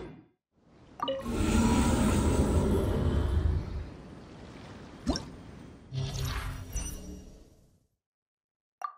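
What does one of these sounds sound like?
A deep magical whoosh roars up and swirls, then fades.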